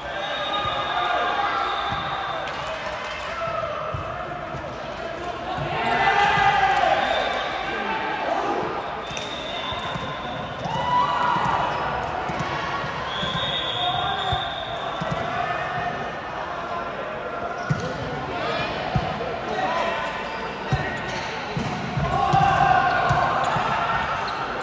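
Young women call out and cheer in a large echoing gym.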